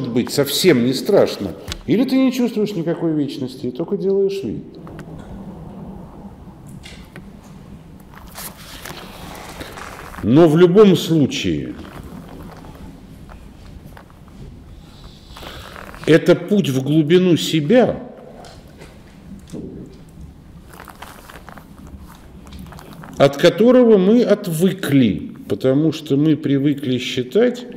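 A middle-aged man speaks calmly and haltingly, close by.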